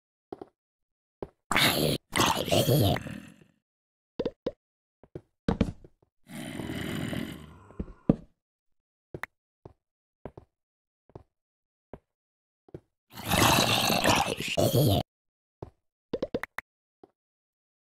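A sword strikes a zombie with short dull thuds.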